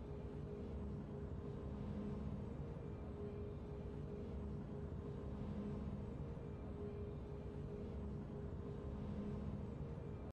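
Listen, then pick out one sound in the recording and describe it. Triumphant game music plays steadily in a slow loop.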